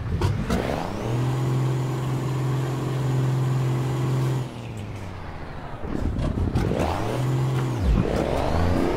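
A truck engine hums and revs, then falls quiet.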